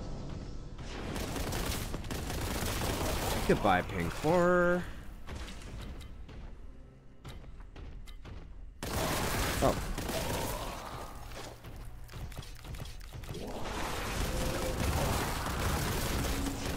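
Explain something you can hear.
Gunfire blasts rapidly in bursts.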